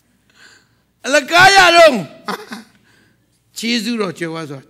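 A man preaches loudly with animation through a microphone in a large echoing hall.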